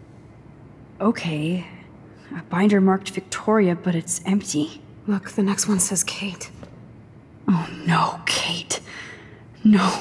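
A young woman speaks quietly and anxiously, close by.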